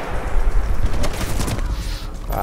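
Bullets crack and spark against rock nearby.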